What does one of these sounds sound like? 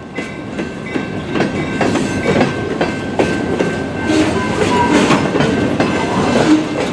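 Steel wheels clack rhythmically over rail joints.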